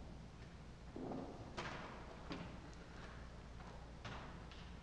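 Footsteps and shuffling knock and echo through a large hall.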